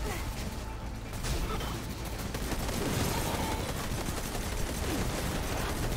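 Blasts of energy boom and crackle.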